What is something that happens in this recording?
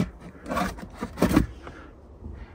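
A cardboard box rustles and scrapes close by.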